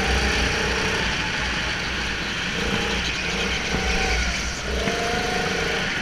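Other go-kart engines whine nearby in a large echoing hall.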